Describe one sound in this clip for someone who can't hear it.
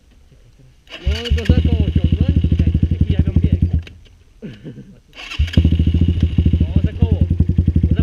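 A dirt bike engine runs.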